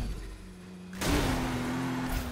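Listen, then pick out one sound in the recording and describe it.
A car crashes with a loud smash of metal and glass.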